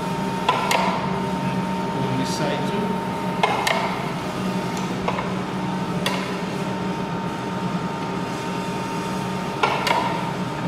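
Metal parts of a machine knock and clack when handled.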